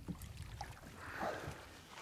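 Water sloshes and drips from a landing net.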